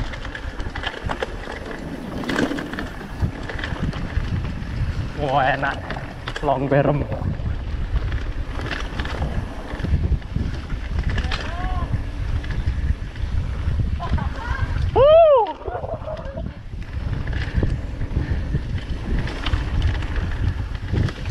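A mountain bike rattles and bumps over a rough dirt trail.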